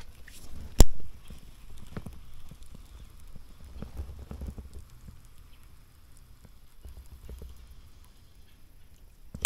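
A fishing reel ticks softly as line is wound in.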